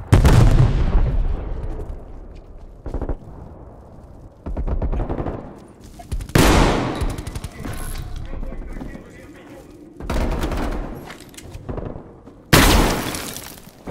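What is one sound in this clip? A gun fires rapid bursts of loud shots.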